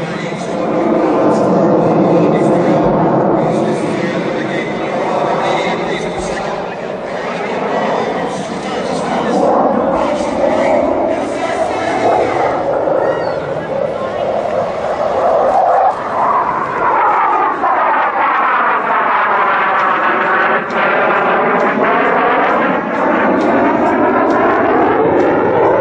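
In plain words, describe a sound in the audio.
A twin-engine fighter jet roars overhead and sweeps past, its sound rising and falling in pitch.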